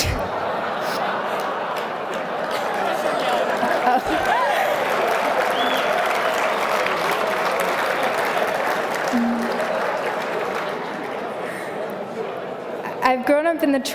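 A large crowd chatters and murmurs in a big hall.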